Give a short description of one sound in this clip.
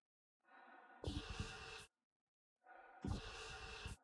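Steam hisses out in loud bursts.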